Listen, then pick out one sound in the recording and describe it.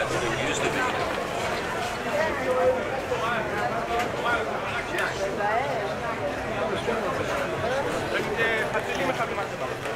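Footsteps shuffle on stone paving.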